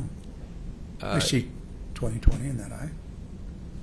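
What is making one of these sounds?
An older man answers calmly into a microphone.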